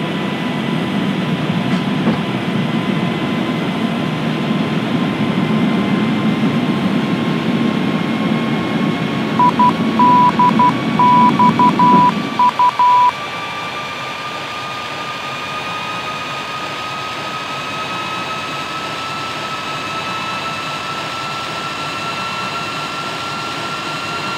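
A jet engine whines steadily, its pitch slowly rising.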